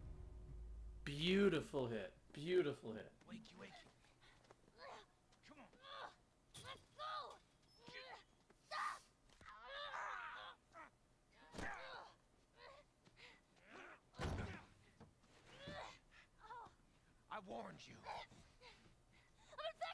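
Men shout and struggle in a scuffle.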